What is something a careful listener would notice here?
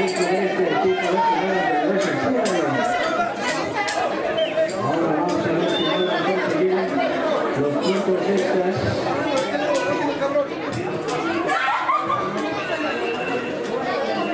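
A crowd of people chatter and shout nearby, outdoors.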